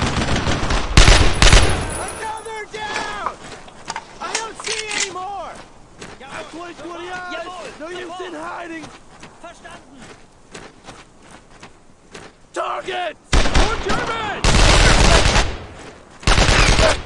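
A rifle fires loud bursts of shots.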